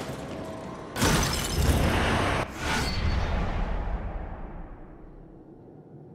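A bright magical chime swells and slowly fades.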